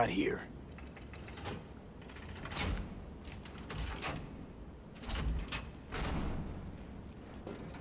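Metal latches clank open.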